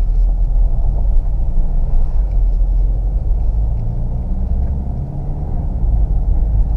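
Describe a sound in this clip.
Tyres roll over a rough road.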